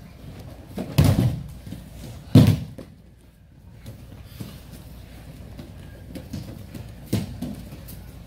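Bodies thump onto a padded mat with a loud slap.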